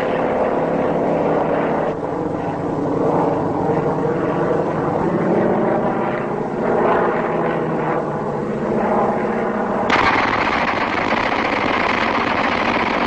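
Propeller plane engines drone loudly overhead, rising and falling in pitch.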